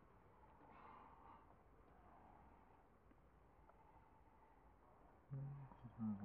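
Water splashes gently in a shallow pool.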